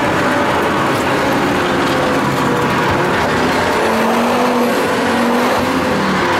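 A car engine roars loudly from inside the cabin as the car speeds along.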